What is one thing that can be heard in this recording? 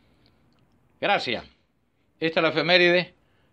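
A man speaks loudly in short bursts.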